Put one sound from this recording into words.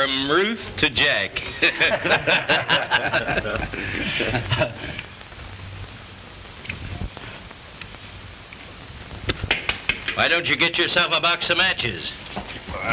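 A middle-aged man talks with animation, heard close by.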